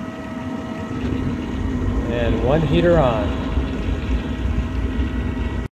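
A machine's low rumble grows louder.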